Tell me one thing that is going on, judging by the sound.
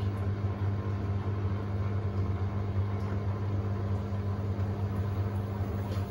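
Water and wet laundry slosh inside a washing machine drum.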